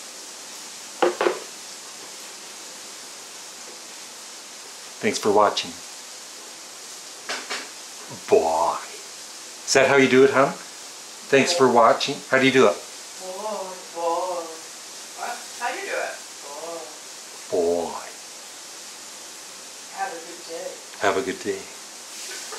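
A middle-aged man talks close to a microphone, calmly.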